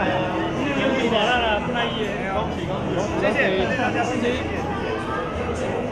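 Glasses clink together in a toast.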